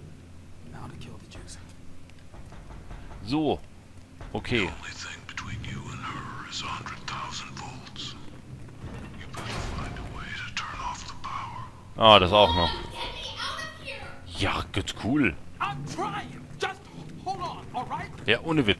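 Footsteps scuff slowly on a hard floor.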